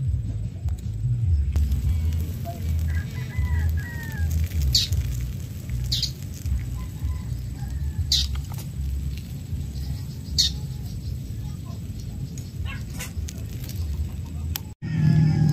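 A wood fire crackles and pops softly.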